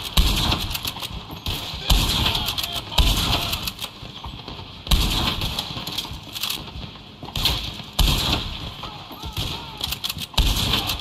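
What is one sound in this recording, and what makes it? A rifle fires loud shots that echo away.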